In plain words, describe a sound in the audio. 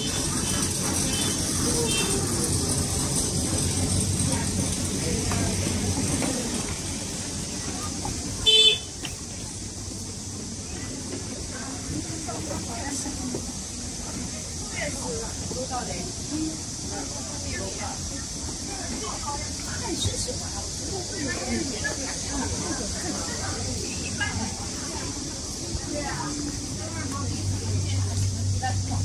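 Women and children talk quietly nearby outdoors.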